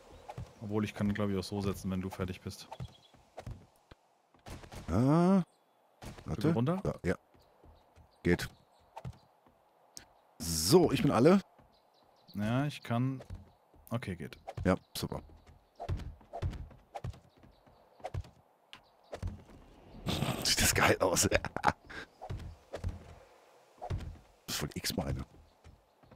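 Footsteps thud on wooden ladder rungs in a steady climb.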